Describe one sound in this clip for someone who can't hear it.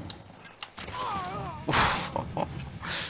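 An arrow strikes with a sharp thud.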